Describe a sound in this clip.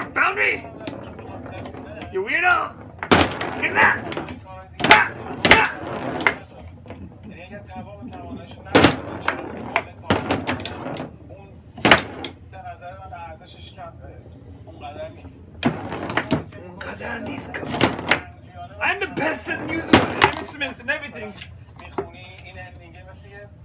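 A foosball ball clacks sharply against the rods and walls of the table.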